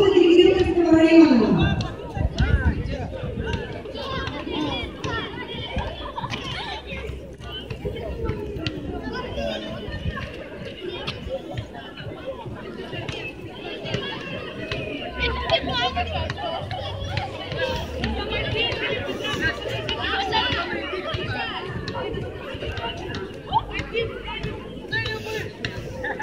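Children shout and cheer in the crowd.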